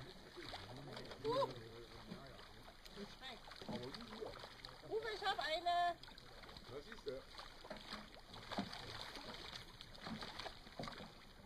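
Water laps gently against a rocky shore.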